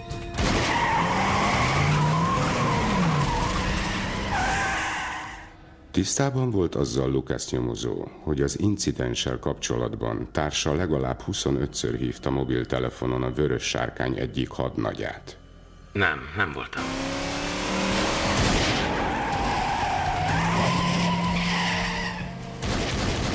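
A car engine roars as a car speeds past.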